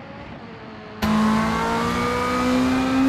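A rally car engine roars loudly from close inside the car.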